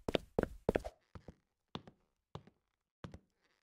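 Light knocks sound as someone climbs a ladder.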